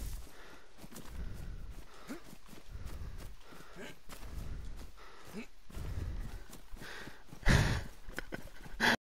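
Footsteps swish and thud through grass.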